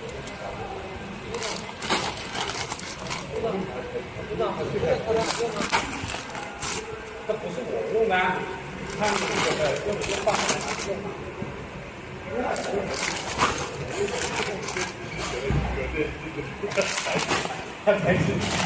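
Plastic bags of dried beans crinkle and rustle as they are handled.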